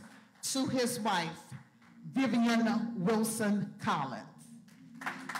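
A woman speaks loudly into a microphone in an echoing hall.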